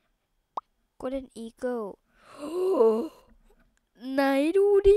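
A young boy speaks excitedly into a microphone.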